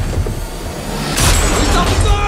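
An explosion bursts with a loud blast.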